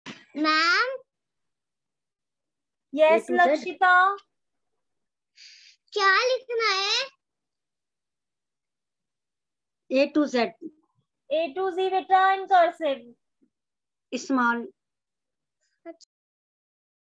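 A young child speaks in short bursts through an online call.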